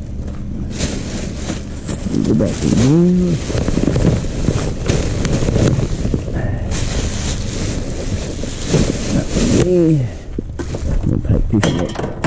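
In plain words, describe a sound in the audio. Cans clink in a bin.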